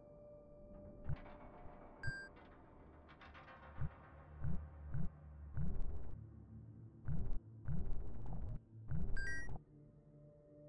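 A young man talks close to a microphone with animation.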